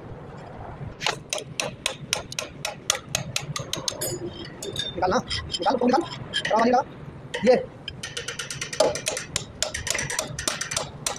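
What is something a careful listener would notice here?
A metal chisel knocks and scrapes against a metal motor housing.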